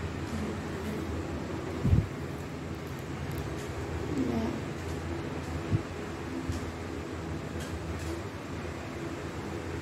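A plastic glue stick cap clicks and knocks.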